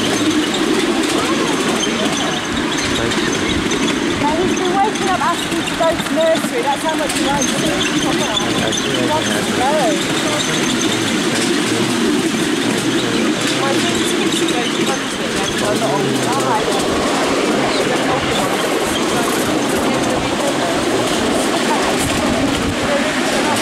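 A small train rumbles steadily along its track.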